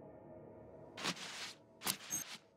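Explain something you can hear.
A jacket swishes open with a quick rustle.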